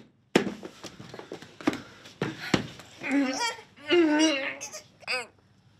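A woman moans and gasps in distress.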